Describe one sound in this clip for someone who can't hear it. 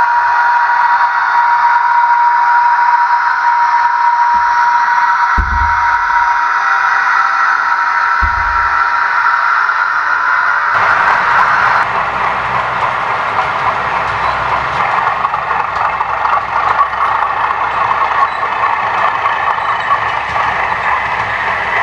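A small model train motor whirs steadily as it runs along the track.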